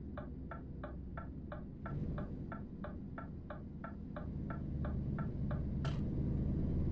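A turn signal ticks rapidly and evenly.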